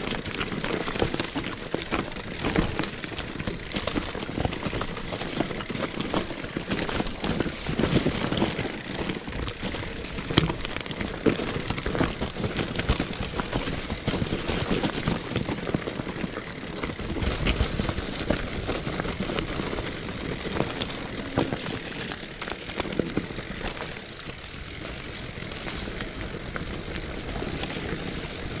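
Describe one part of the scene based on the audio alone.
A bicycle frame rattles and clatters over bumps.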